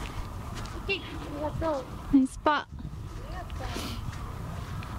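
A young woman calls out cheerfully outdoors.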